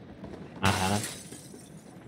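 Footsteps patter quickly on dry ground.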